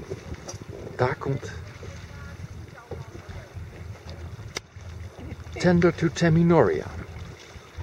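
A woman calls out across the water.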